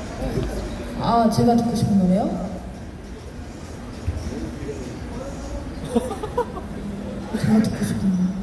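A young woman speaks with animation through a microphone and loudspeaker.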